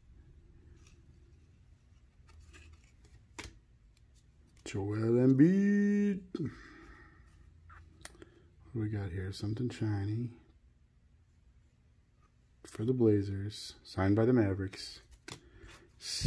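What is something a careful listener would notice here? Trading cards rustle and slide against each other as they are handled.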